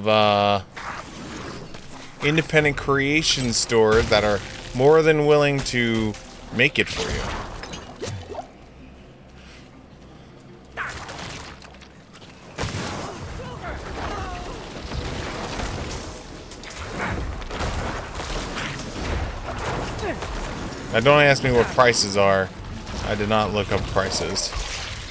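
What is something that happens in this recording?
Game combat effects clash and hum in the background.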